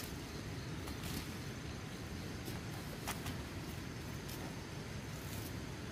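Hands shake dirt from uprooted plant roots with soft thuds.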